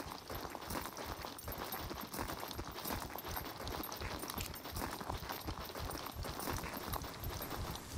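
Footsteps crunch over dry grass and dirt at a steady walking pace.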